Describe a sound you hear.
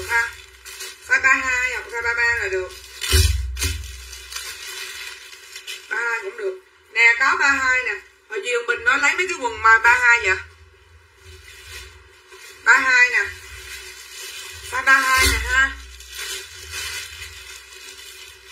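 Denim fabric rustles as it is handled.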